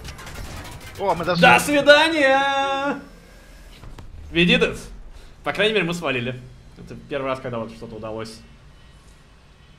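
A young man talks and laughs with animation, close to a microphone.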